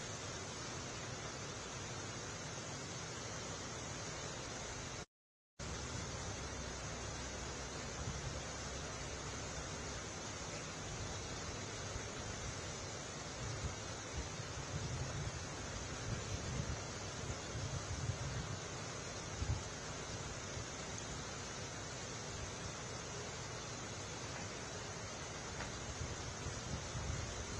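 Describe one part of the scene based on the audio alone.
A vehicle engine idles with a low, steady rumble.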